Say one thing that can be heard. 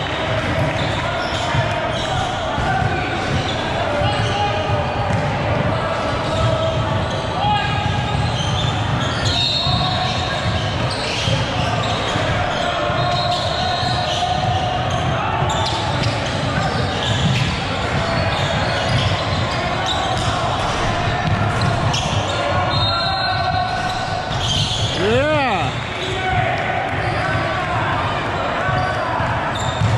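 Spectators chatter steadily in a large echoing hall.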